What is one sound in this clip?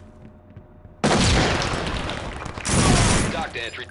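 A gun fires in loud, rattling bursts.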